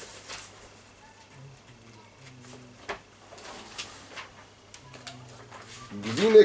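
Pages of a book rustle as they are turned.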